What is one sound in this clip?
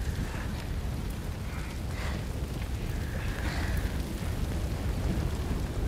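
A young woman groans and whimpers in pain.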